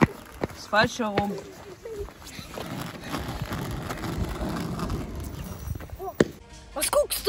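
Skateboard wheels roll on asphalt.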